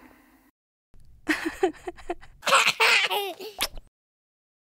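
A young woman speaks cheerfully and softly up close.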